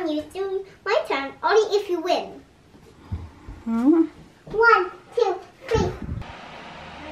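A young girl talks excitedly close by.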